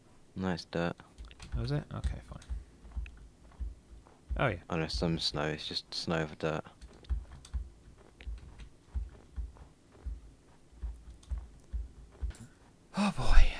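Footsteps crunch steadily on snow.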